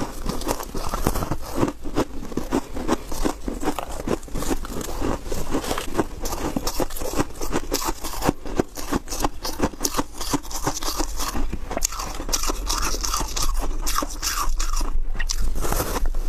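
Crumbly ice crackles and squeaks as it is squeezed.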